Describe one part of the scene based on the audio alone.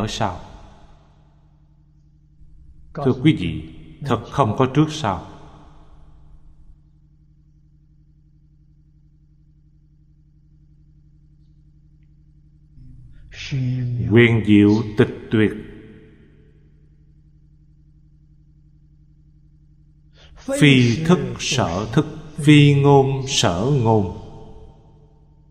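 An elderly man speaks calmly into a microphone, in short phrases with long pauses.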